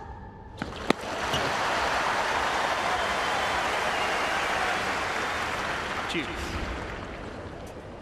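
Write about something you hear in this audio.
A large crowd applauds and cheers loudly, then fades.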